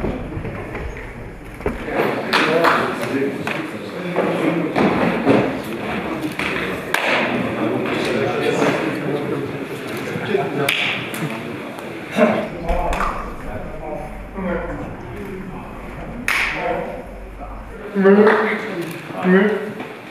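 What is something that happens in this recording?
Men and women talk and murmur nearby.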